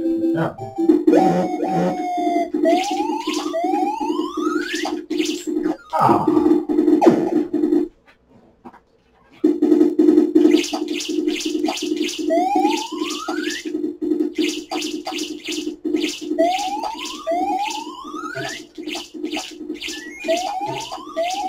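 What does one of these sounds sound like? Video game music and sound effects play from a television loudspeaker, with rising chirps and pulsing beeps.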